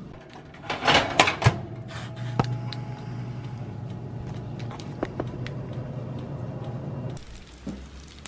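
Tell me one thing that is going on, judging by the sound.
An air fryer fan whirs steadily.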